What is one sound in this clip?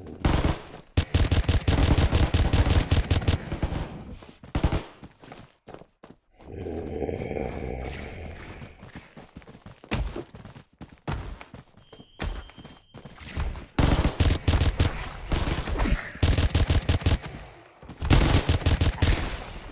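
A rapid-fire gun rattles in loud, fast bursts.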